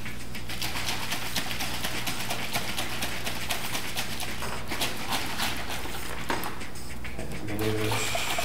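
Liquid sloshes in a plastic bottle being shaken.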